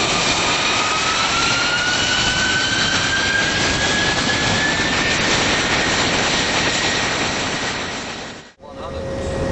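A jet engine whines and rises steadily in pitch.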